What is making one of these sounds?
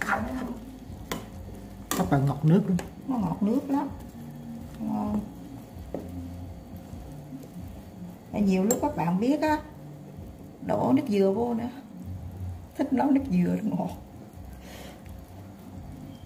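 Broth sloshes as a ladle stirs it.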